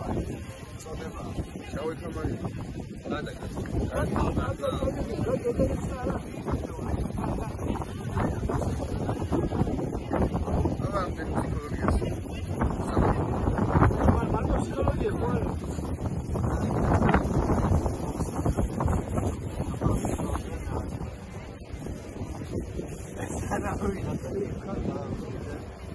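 Wind blows loudly across the microphone outdoors.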